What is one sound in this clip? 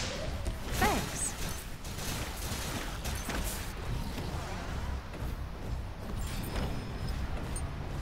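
Heavy footsteps thud along at a run.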